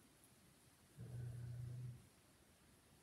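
A man hums a short, low tone.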